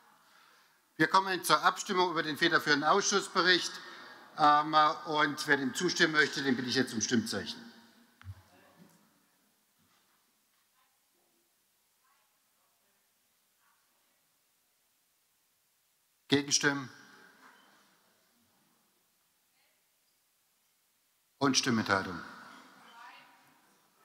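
A man speaks into a microphone in a large echoing hall, with pauses between short statements.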